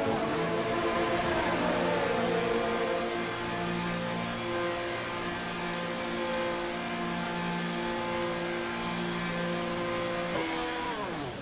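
A racing car engine hums steadily at low revs.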